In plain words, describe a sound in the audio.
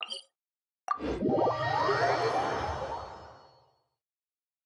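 A chiming flourish rises and fades.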